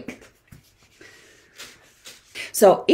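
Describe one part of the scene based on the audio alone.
A cloth wipes across a whiteboard.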